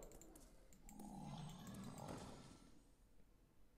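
A card game's magical sound effects swirl and chime.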